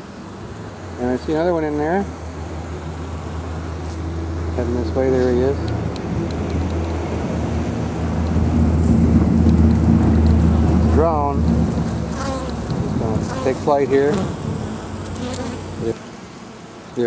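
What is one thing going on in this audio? Honeybees buzz loudly in a dense swarm.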